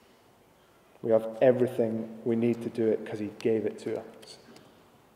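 A young man speaks calmly into a clip-on microphone.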